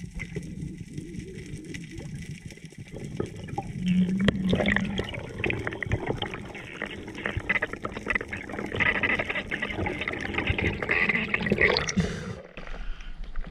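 Water gurgles and rushes around the microphone underwater.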